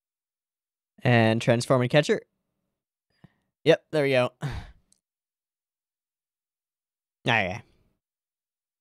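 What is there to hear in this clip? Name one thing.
A young man speaks calmly and cheerfully into a close microphone.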